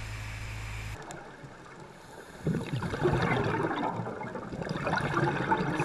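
Air bubbles from a diver's breathing gurgle and burst underwater.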